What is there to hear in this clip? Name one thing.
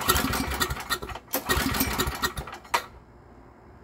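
Metal rattles and knocks as a man handles a small generator.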